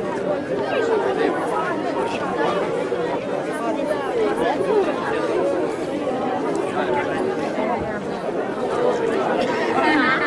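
A crowd of children chatters and calls out nearby outdoors.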